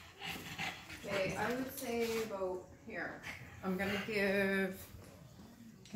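A French bulldog whines.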